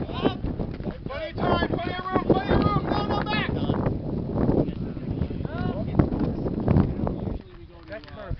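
Young men cheer and shout loudly nearby, outdoors.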